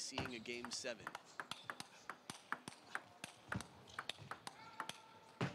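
A table tennis ball clicks sharply back and forth off paddles and the table in a quick rally.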